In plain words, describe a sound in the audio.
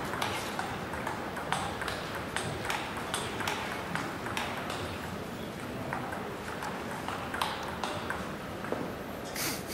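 A ping-pong ball bounces and clicks on a table and paddle.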